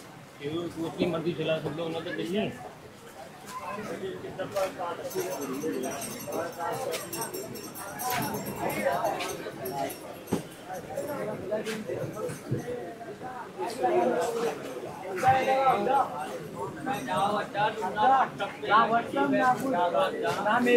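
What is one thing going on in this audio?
A crowd of people chatters and calls out nearby.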